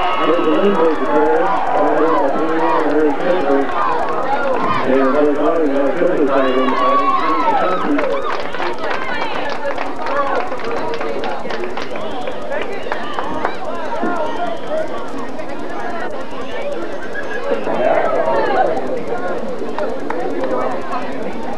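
A crowd of people talks and calls out outdoors.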